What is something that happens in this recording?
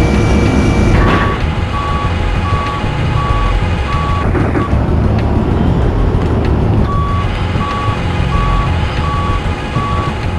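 A forklift's warning beeper beeps in an even, repeating rhythm.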